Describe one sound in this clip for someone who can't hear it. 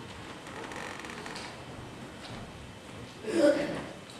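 Footsteps walk across a floor in a large, echoing hall.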